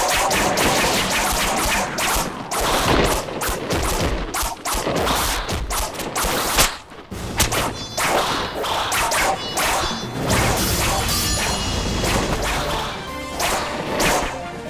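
Loud explosions boom and debris crashes.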